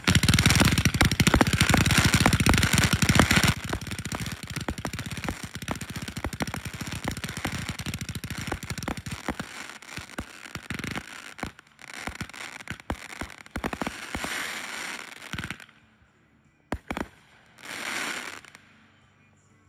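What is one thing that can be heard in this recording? Fireworks bang and crackle in rapid bursts, loud at first and then thinning out.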